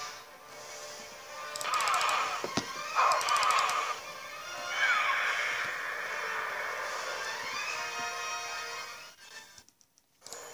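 Loud whooshing game sound effects play through small laptop speakers.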